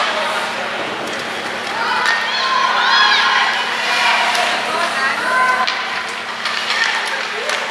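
Ice hockey sticks clack against a puck in an echoing rink.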